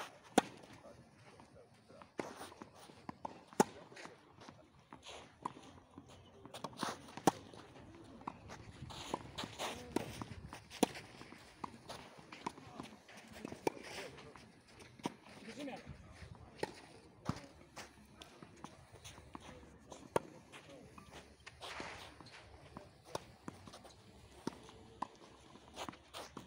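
Tennis rackets hit a ball back and forth outdoors.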